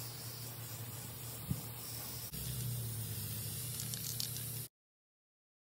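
A spray can hisses.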